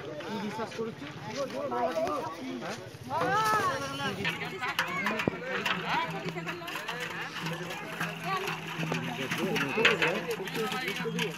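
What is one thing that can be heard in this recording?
Men talk loudly nearby, outdoors.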